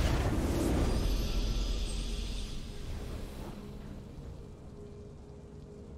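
A triumphant victory fanfare swells and fades.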